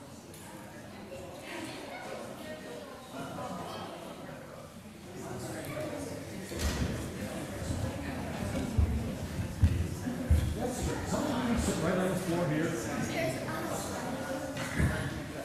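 Young children chatter and call out in a large echoing room.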